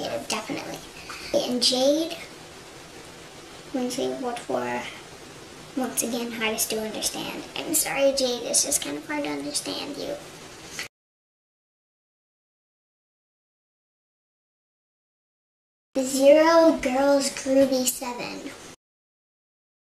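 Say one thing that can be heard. A young girl talks casually and close by.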